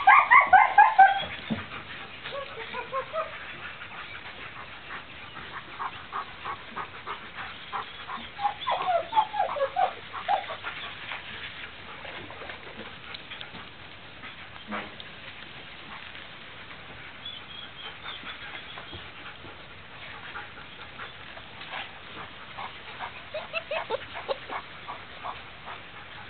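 Puppies growl and yip as they tug at a cloth.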